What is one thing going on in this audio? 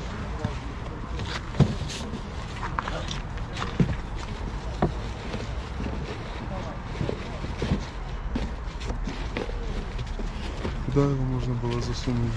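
Cardboard boxes rustle and scrape as a man handles them.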